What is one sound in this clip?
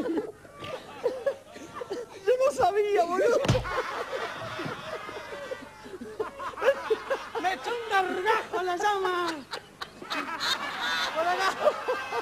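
A woman laughs loudly and shrieks with delight.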